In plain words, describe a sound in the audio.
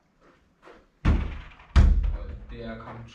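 A ball is kicked hard and thuds against a wall, echoing in a small bare room.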